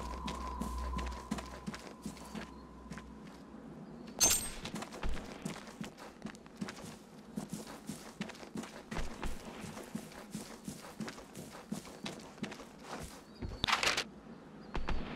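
Footsteps crunch over dry grass and stones.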